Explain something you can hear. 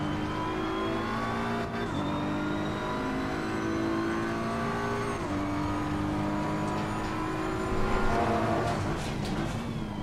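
A racing car engine roars steadily, its pitch climbing and dropping as gears shift.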